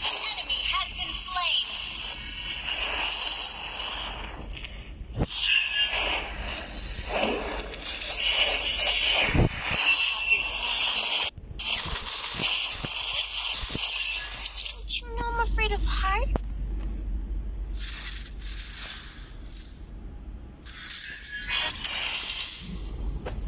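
Game sound effects of magic blasts and hits ring out throughout.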